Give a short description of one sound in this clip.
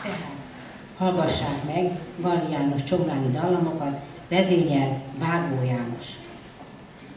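A man speaks over a microphone in a large echoing hall.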